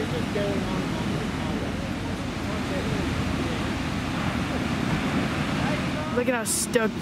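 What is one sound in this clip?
Waves break and wash onto a stony shore.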